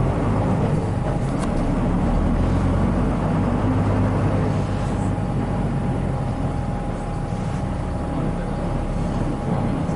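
The diesel engine of a city bus rumbles, heard from inside, as the bus drives along a snowy road.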